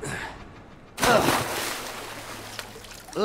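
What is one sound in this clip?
Something splashes heavily into water.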